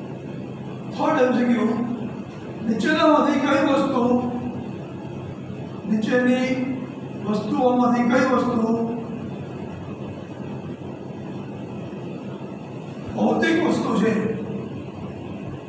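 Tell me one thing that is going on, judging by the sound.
A middle-aged man speaks calmly in short bursts.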